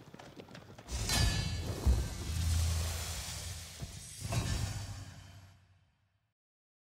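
A short triumphant fanfare swells with a booming hit and then fades.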